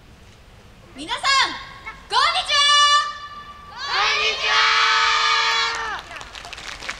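A group of young women shouts loud calls in unison outdoors.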